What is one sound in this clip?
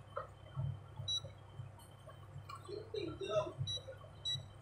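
An electronic appliance gives short high beeps as its buttons are pressed.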